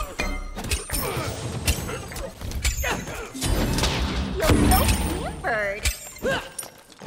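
Heavy blows and impacts thud during a battle.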